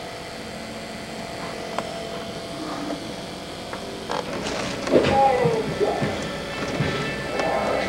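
Wind thrashes through tree branches and palm fronds.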